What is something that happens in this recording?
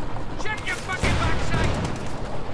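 A shell explodes with a loud boom.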